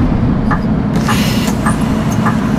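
A bus door hisses open with a burst of air.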